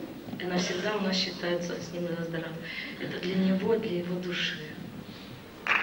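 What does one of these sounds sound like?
A woman sings into a microphone, her voice carrying in a large hall.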